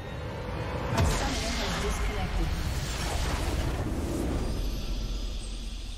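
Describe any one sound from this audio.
A deep explosion booms and rumbles.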